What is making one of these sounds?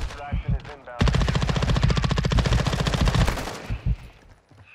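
A rifle fires a rapid burst of shots close by.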